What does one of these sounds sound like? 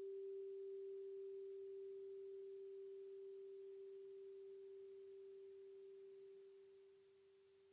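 A singing bowl hums softly and slowly fades away.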